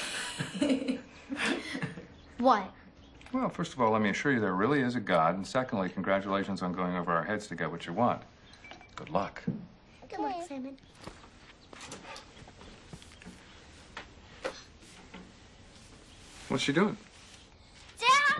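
A young girl speaks and laughs close by.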